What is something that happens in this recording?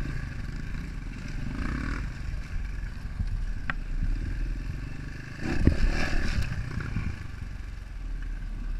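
A dirt bike engine hums steadily close by.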